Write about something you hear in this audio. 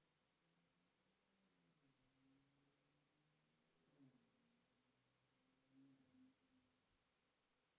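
A man speaks softly and slowly into a microphone, close by.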